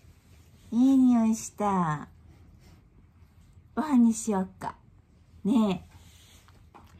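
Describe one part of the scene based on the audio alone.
A small dog howls and whines in drawn-out calls close by.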